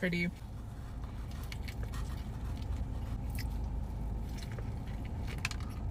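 A young woman bites into and chews crunchy food, close up.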